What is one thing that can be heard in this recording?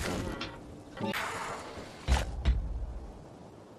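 A game menu opens with a soft whoosh and click.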